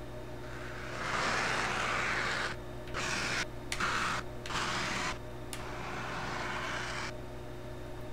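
A spaceship engine roars and whooshes in a game.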